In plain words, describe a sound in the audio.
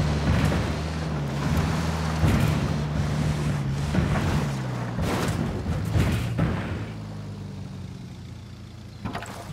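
Tyres bump and rustle through brush.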